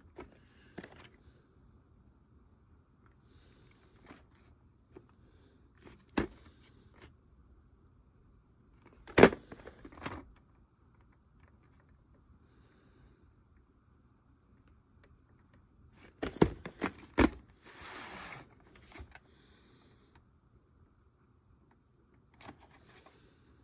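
A plastic videotape case clicks and knocks as hands handle it close by.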